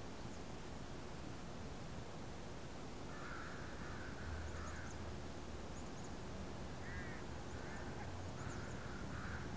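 Wind blows steadily across open ground outdoors.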